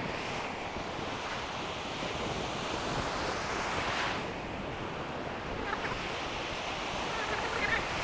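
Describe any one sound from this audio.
Waves wash steadily onto a sandy shore.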